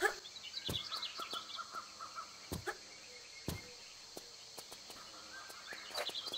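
Footsteps run across stone and land with thuds.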